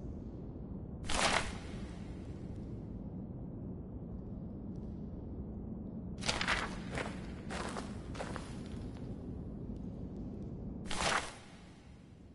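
Paper rustles and crinkles as a sheet is picked up and turned.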